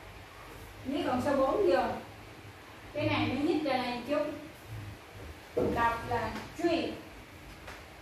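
A woman speaks clearly and calmly nearby, as if teaching.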